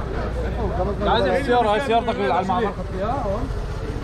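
A man talks on a phone close by.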